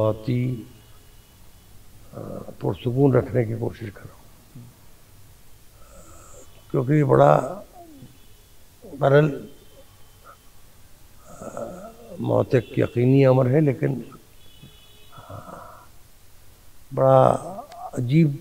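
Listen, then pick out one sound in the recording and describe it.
A man speaks calmly into a close microphone, in pauses.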